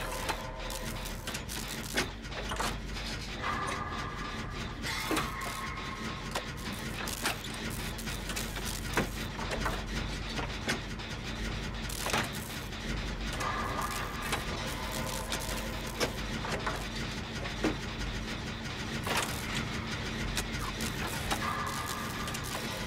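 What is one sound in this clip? Metal parts clank and rattle as an engine is worked on by hand.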